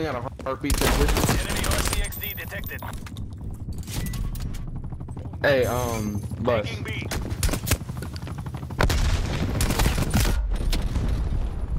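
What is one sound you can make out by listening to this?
Rapid gunfire rattles in close bursts.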